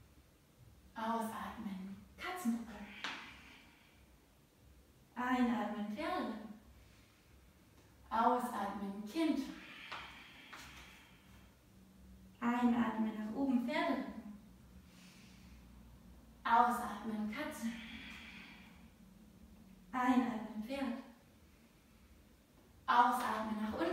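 A woman speaks calmly into a close microphone, giving instructions in short phrases.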